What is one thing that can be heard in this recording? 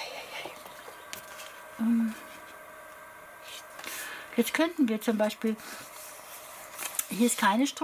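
Paper pages rustle softly as they are turned.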